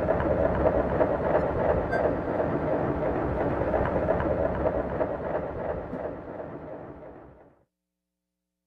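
Electronic drum machines play a pulsing synthesized groove that fades out.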